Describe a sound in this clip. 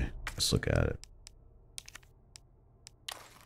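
Soft interface clicks tick as a game menu opens.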